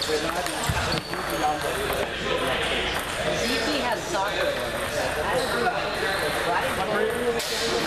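Men talk in the background.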